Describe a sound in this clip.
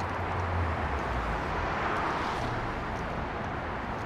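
A car drives past on the road.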